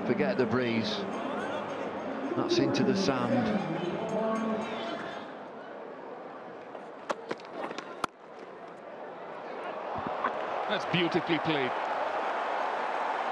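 A crowd murmurs and cheers in a large open stadium.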